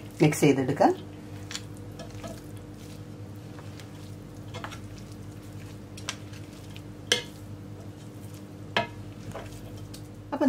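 A spatula scrapes and knocks against a pot as rice is stirred.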